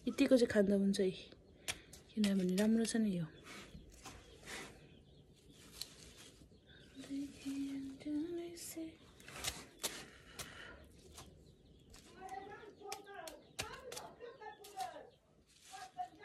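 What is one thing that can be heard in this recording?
A young woman speaks close by, calmly.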